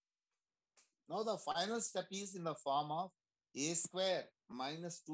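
A man speaks with animation, close to a microphone, heard through an online call.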